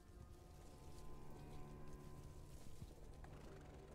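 Hooves of a horse clop slowly on dry ground.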